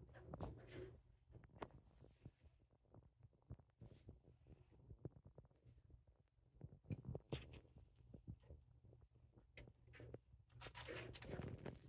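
A hand strokes a cat's fur with a soft rustle.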